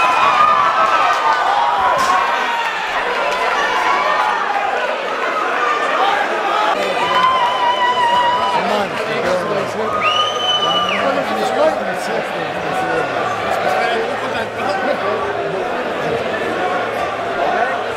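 A large crowd cheers and chatters loudly in an echoing hall.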